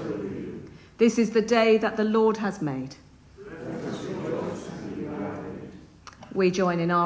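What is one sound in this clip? A woman speaks slowly and clearly in an echoing room.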